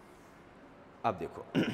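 A man speaks up clearly and close by.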